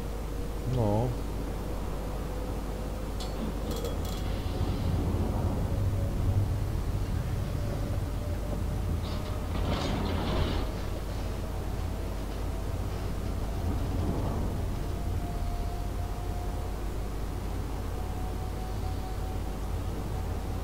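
Water washes along a ship's hull.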